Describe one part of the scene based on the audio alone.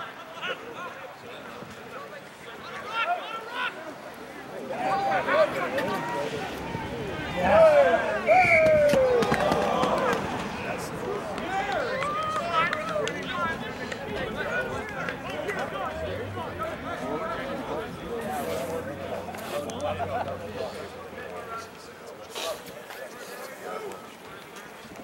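Players shout to one another across an open field.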